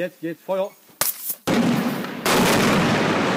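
A sharp blast cracks out.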